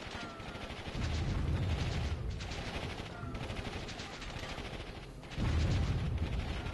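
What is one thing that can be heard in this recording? Explosions boom in quick bursts.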